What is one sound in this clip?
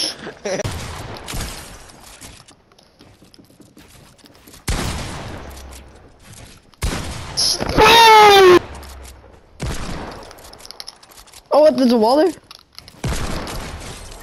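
A shotgun fires loud blasts, one after another.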